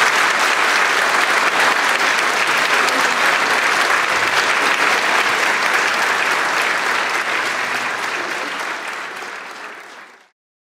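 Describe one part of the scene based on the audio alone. An audience applauds loudly in a large hall, and the applause fades away.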